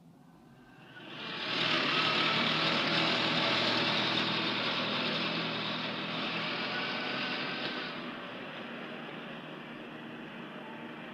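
A car engine runs and the car drives away.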